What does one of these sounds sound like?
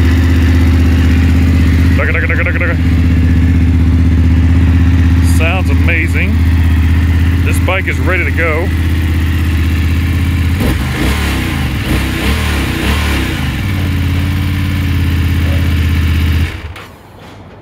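A motorcycle engine idles with a steady low rumble, then cuts off.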